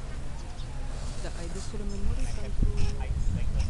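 People talk quietly nearby.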